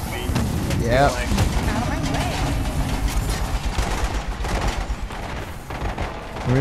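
Gunshots and energy blasts crack rapidly in a game.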